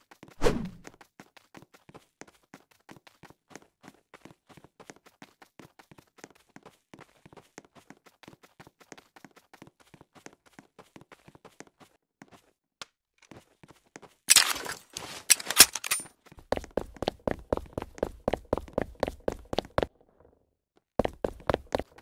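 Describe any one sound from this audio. Footsteps crunch quickly and steadily on sand.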